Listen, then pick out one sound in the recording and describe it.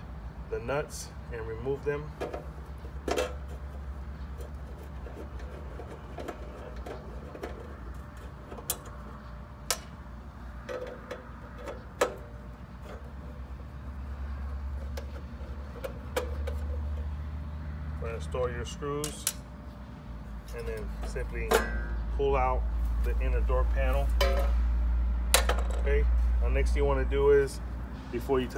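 Tools click and clatter against a metal box.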